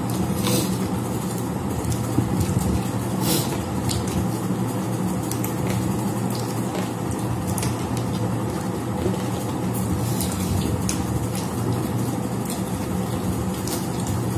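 A man chews and slurps food close by.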